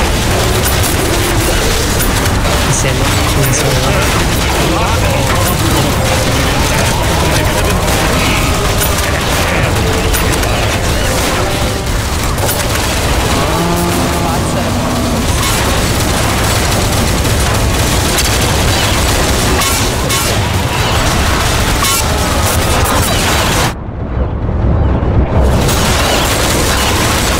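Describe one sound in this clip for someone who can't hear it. A shotgun fires loud blasts again and again.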